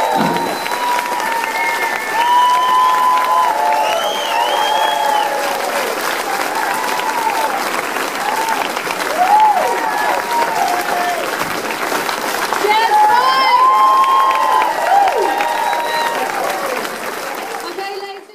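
Lively music plays over loudspeakers in a large hall.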